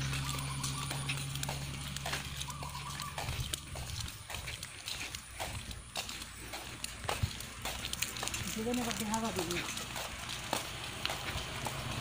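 A man walks in sandals on a paved road.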